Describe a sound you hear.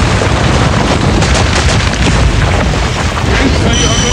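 Heavy boulders rumble and crash.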